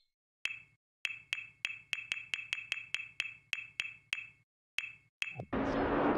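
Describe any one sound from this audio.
Short interface clicks tick in quick succession.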